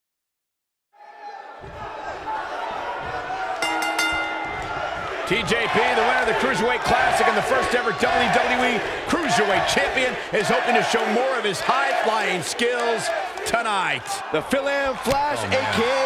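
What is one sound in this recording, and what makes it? A large crowd cheers and chants in a big arena.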